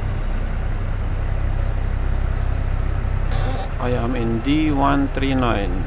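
A truck engine rumbles low and steady while driving slowly.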